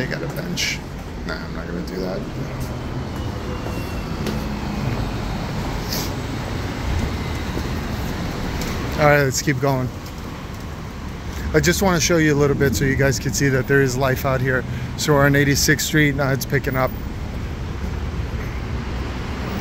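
Traffic rumbles steadily on a nearby city street.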